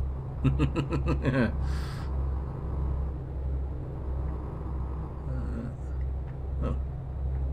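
A truck engine drones low and steady.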